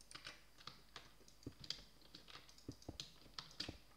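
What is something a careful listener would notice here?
Footsteps tread softly on stone.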